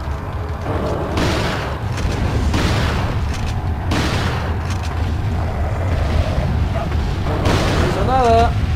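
Gunshots fire with a loud booming crack.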